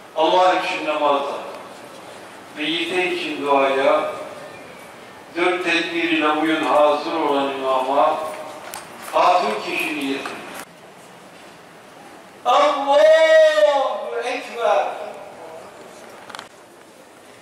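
A man chants a prayer into a microphone, heard through a loudspeaker outdoors.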